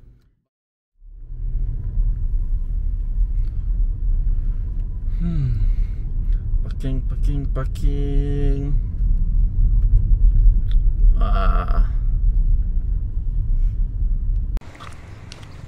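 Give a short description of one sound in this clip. A car engine rumbles low while driving.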